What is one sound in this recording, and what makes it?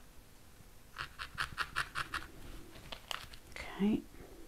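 A felting needle pokes repeatedly into wool with quick, soft crunches.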